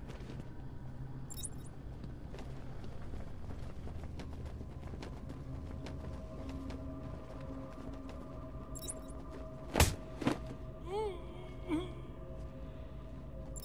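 Footsteps tap softly on a metal floor.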